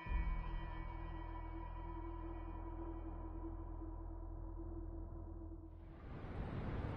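Steady music plays from a game's menu.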